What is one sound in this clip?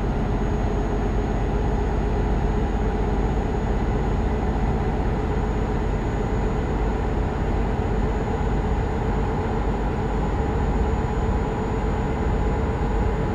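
Tyres roll on a highway with a steady road noise.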